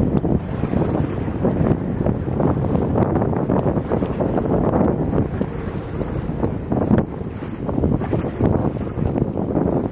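Water splashes as a wet parachute is hauled out of the sea.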